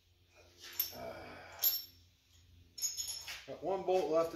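Metal parts clink and rattle.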